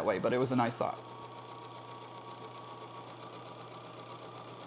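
A sewing machine hums steadily.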